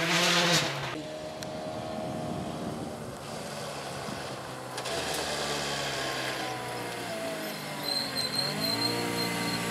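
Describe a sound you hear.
A rally car engine approaches from a distance, rising in pitch.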